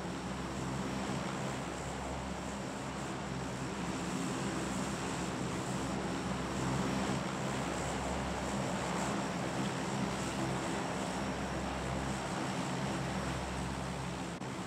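Propeller engines of a large plane drone steadily.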